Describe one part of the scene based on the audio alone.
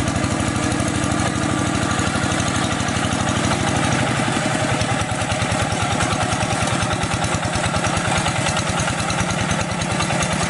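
A small diesel engine chugs steadily close by.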